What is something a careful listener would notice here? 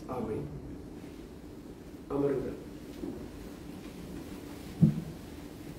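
An elderly man speaks slowly and solemnly through a microphone in an echoing hall.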